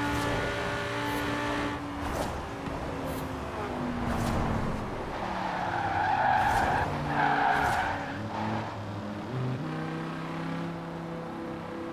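A sports car engine roars at high speed, then drops in pitch as the car slows down and shifts gears.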